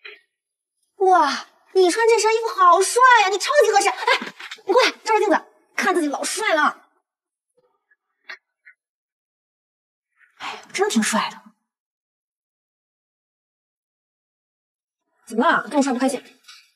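A young woman speaks brightly and with animation, close by.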